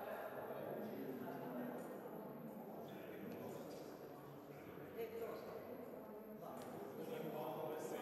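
Footsteps walk across a hard floor in a large echoing hall.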